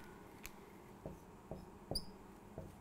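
A marker taps lightly on a whiteboard.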